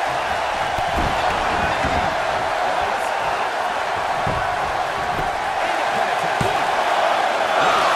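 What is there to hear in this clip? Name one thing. Bodies thud heavily on the ring mat.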